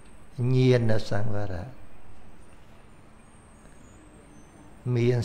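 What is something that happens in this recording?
An elderly man speaks calmly into a microphone in short phrases.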